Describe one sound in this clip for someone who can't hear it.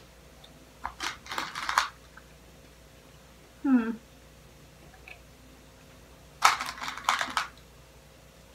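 Something crinkles and rustles in a young woman's hands.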